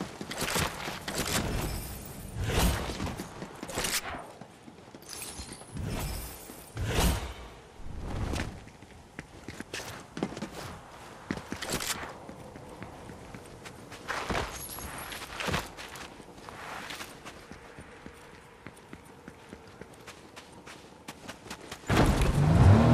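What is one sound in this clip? Footsteps thud and scrape along at a run.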